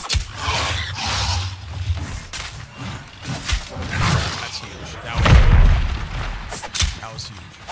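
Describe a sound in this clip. A sword clangs and slashes in a game fight.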